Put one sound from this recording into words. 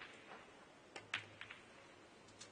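Billiard balls click sharply against each other.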